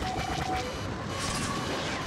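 Blaster cannons fire in rapid bursts.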